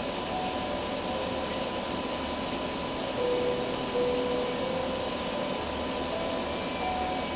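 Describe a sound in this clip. Water bubbles and gurgles steadily from an aquarium pump.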